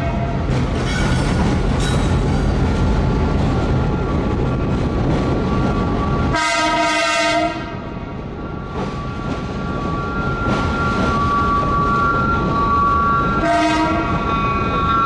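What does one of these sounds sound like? A locomotive rumbles along on rails.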